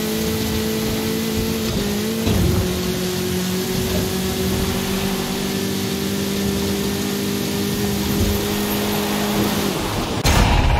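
A small buggy engine drones steadily at high revs.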